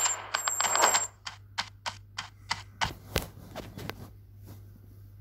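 Coins jingle as they are collected.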